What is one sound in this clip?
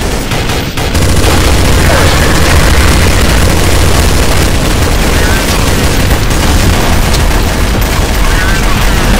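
Rapid gunfire rattles loudly.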